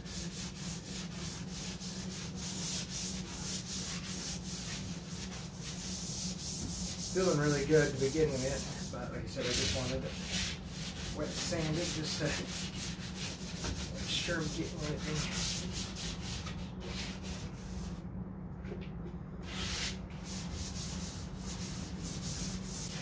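A man rubs a panel by hand with a rhythmic scraping.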